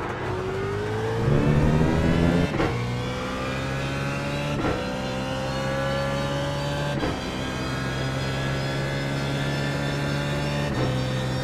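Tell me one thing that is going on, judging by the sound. A racing car engine roars and revs up through the gears, with brief drops at each gear shift.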